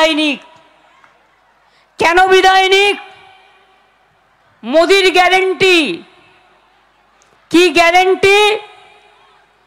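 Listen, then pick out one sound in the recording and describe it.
A woman speaks loudly and forcefully through a loudspeaker, in short bursts with pauses that echo.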